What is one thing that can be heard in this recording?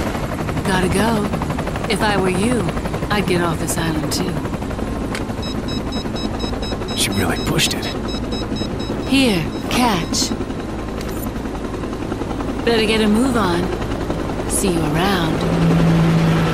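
A young woman speaks calmly and teasingly.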